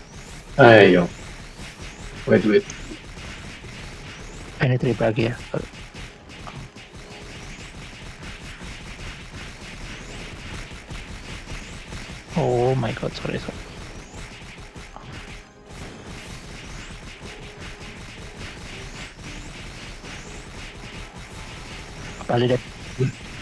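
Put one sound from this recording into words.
Rapid magical zapping and hit sounds crackle steadily.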